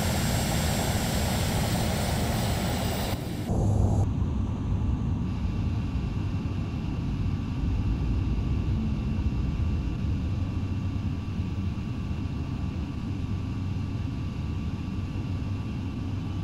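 A jet engine whines and rumbles steadily.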